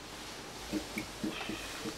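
An iron slides and presses over cloth.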